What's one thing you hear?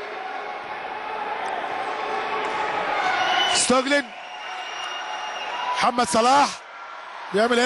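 A crowd cheers and roars in a large echoing hall, swelling louder.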